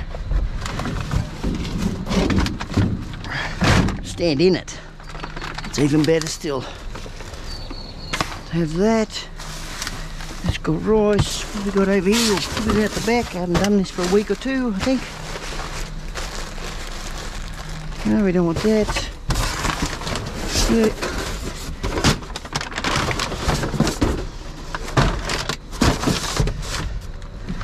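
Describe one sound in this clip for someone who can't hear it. Light plastic objects knock and thud as they are moved.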